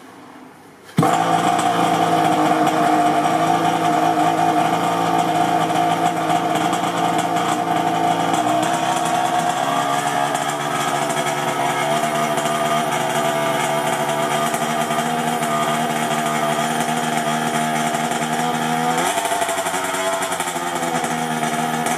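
A small nitro engine starts abruptly and idles with a loud, buzzing rattle.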